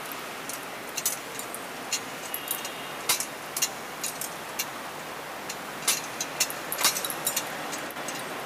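A metal censer clinks on its chains as it swings.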